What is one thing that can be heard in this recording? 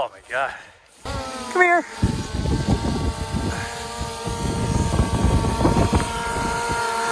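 A drone buzzes loudly overhead with a steady whine.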